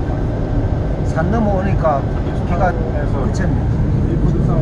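A woman speaks briefly and casually close by.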